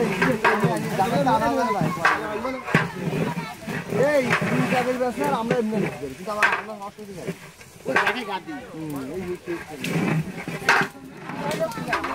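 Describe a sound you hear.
A metal ladle scrapes and knocks inside a large pot.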